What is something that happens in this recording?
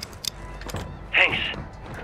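Boots clank on a metal ladder.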